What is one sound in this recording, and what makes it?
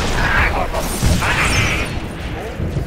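An explosion crackles and scatters sparks.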